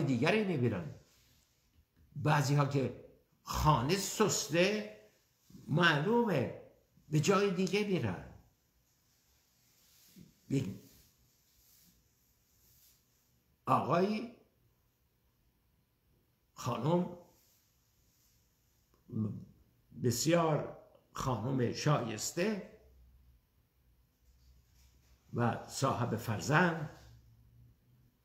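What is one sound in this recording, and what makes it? An elderly man speaks calmly and earnestly into a close microphone, with pauses between phrases.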